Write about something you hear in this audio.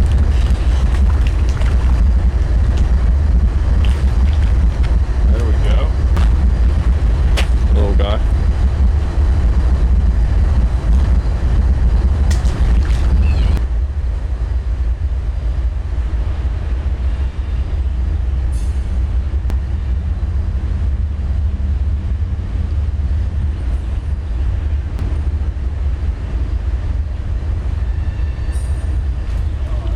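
Wind buffets the microphone with a low rumble.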